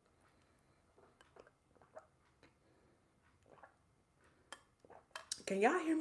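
A young woman sips noisily through a straw.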